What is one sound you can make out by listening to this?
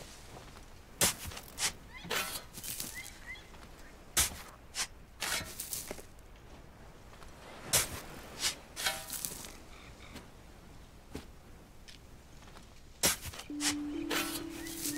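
A shovel digs into soft dirt with sharp thuds.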